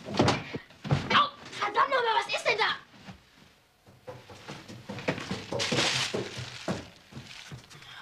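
A boy speaks nearby.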